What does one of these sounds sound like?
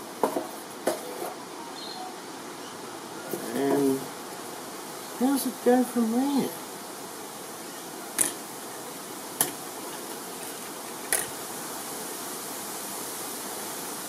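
Plastic parts click and rattle as they are fitted together.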